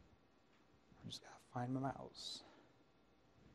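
A man speaks briefly through a microphone.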